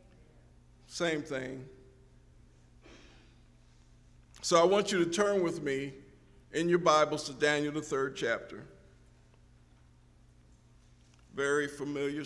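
A man preaches through a microphone in short phrases with pauses.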